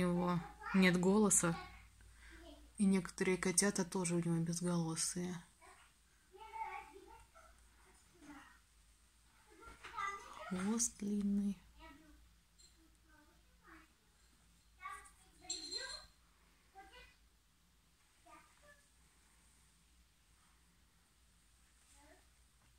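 A hand strokes a cat's fur with a soft rustle.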